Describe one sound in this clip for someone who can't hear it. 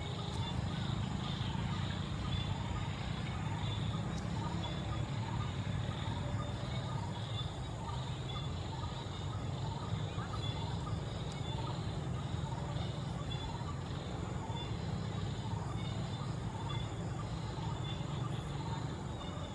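A diesel locomotive rumbles in the distance as it pulls away.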